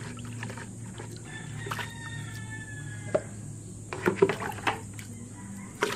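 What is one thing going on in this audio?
A hand splashes and swirls water in a plastic tub.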